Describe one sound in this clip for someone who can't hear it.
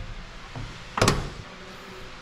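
A truck door handle clicks open with a metallic snap.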